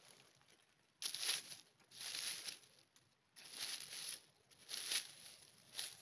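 Dry leaves rustle and crackle as they are brushed aside.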